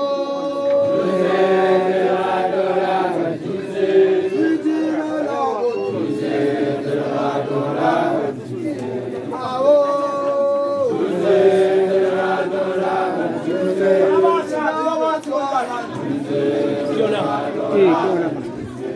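A group of women sing together loudly and close by.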